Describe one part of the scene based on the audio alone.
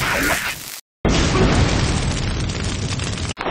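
An explosion bursts.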